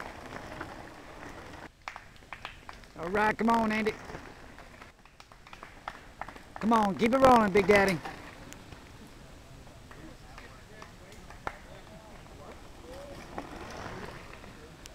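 Bicycle tyres crunch over a dirt trail.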